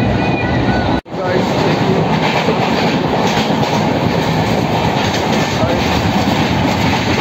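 A train rattles and rumbles loudly along the tracks.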